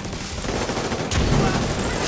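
Bullets strike and ricochet off hard surfaces.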